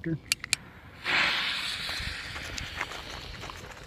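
A firework fuse fizzes and sputters loudly, then hisses on more quietly.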